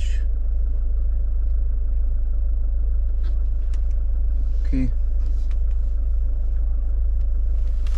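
A finger taps lightly on a touchscreen.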